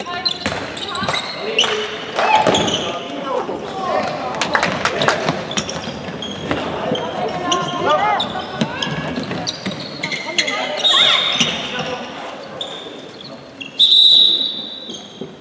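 Shoes squeak sharply on a hall floor.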